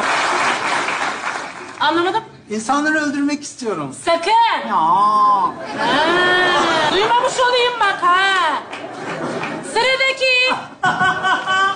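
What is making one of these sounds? A woman speaks in reply.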